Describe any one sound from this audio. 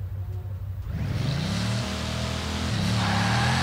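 A car engine revs up again, loud and rising.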